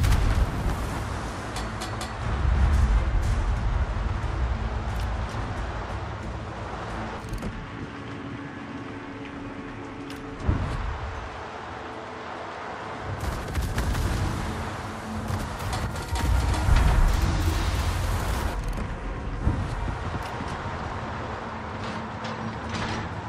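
Sea water rushes and splashes against a ship's hull.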